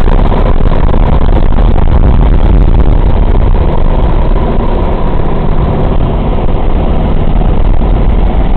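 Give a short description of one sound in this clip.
Wind rushes through an open hatch of a flying plane.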